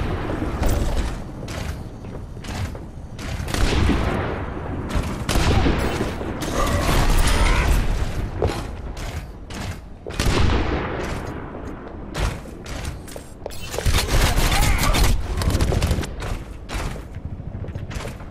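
An energy shield crackles and hums as shots strike it.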